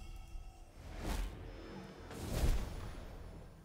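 A magic bolt zaps and crackles.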